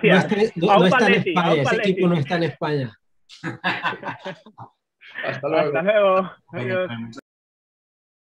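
Several people laugh over an online call.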